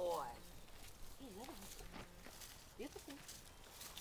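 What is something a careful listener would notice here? Dry leaves rustle underfoot as a woman and a dog walk.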